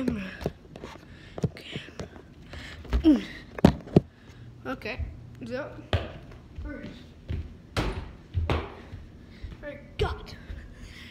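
A basketball bounces on a hard floor.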